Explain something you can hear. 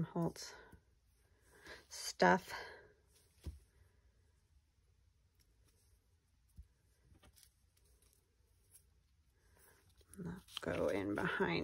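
Paper rustles and crinkles between fingers.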